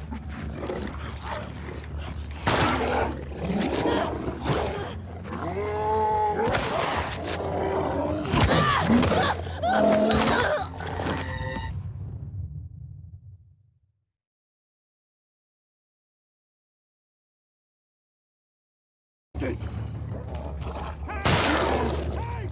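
A creature shrieks and snarls.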